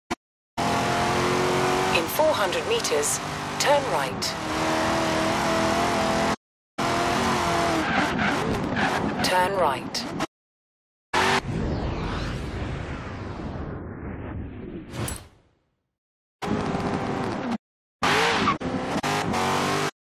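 A car engine roars at high revs, shifting up through the gears with short breaks in between.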